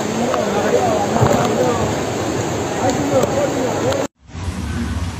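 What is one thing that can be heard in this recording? Rain pours down heavily outdoors.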